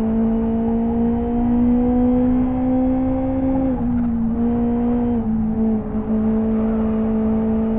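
A car engine hums steadily, its pitch rising slowly and then dropping as gears change.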